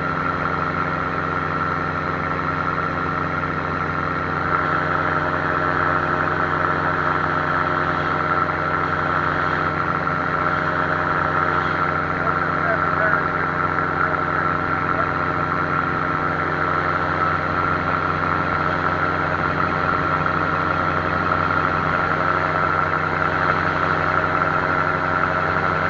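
A small aircraft engine drones loudly and steadily close by.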